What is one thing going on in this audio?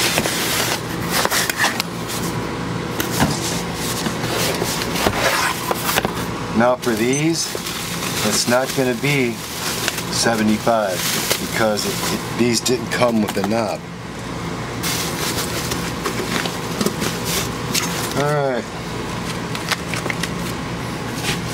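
Cardboard scrapes and thumps as a box is handled close by.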